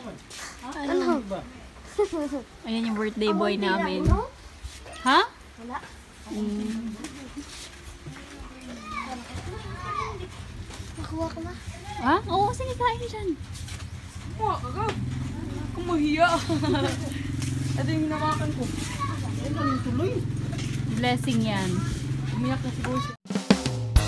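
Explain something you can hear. A young boy talks and laughs close by.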